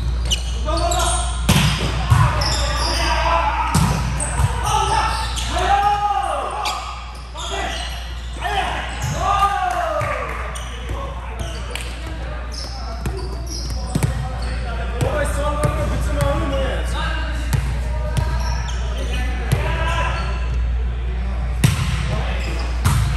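Young men call out to each other across a large echoing gym.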